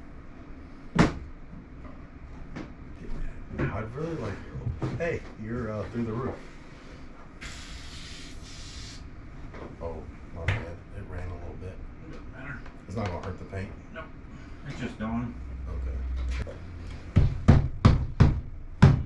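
Suction cups clunk against a glass window.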